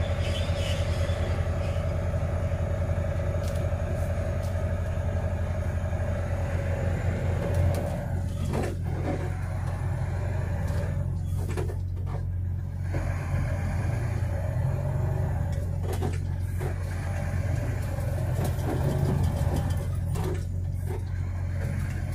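A vehicle's engine hums steadily from close by as it drives.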